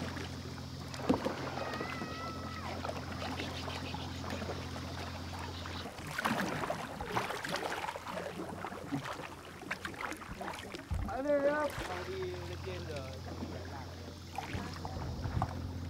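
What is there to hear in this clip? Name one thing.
Kayak paddles dip and splash in calm water.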